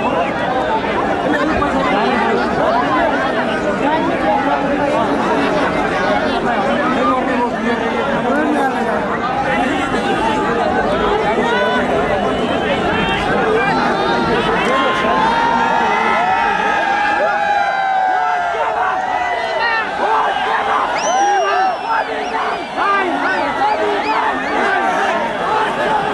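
Young men nearby shout and chant.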